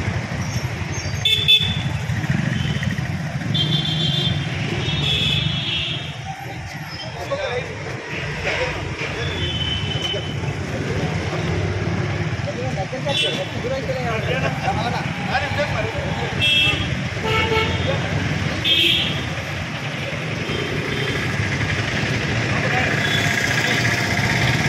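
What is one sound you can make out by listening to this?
Several men talk and murmur among themselves nearby, outdoors.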